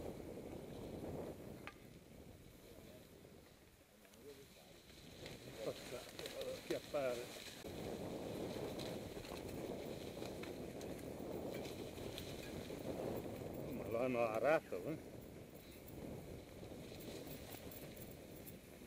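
Bicycle tyres roll and crunch over dry leaves and dirt.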